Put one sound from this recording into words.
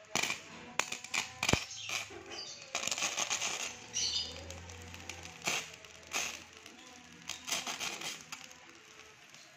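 Electric sparks crackle and sizzle in short bursts.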